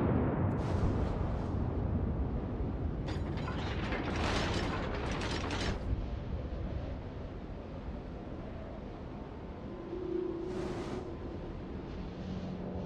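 Water rushes along a ship's hull.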